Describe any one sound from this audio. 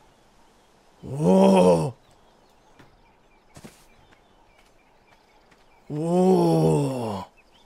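A large creature lets out long, deep, wavering roars.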